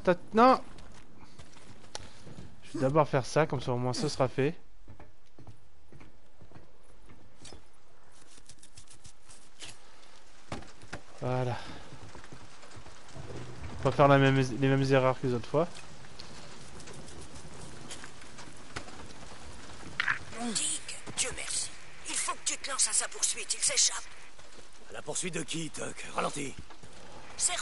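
A young man talks through a microphone in short bursts.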